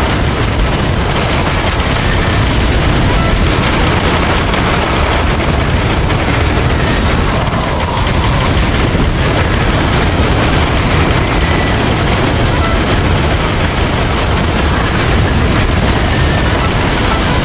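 Explosions boom and crackle again and again.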